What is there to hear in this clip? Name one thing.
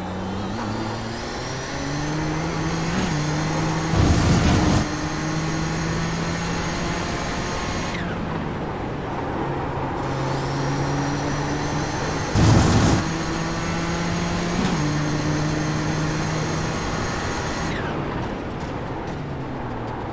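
A racing car engine roars, climbing in pitch and dropping at each gear shift.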